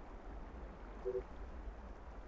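A short electronic beep sounds twice.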